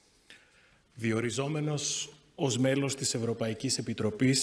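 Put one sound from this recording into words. A man speaks formally into a microphone in a large echoing hall.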